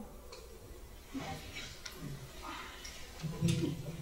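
A woman laughs.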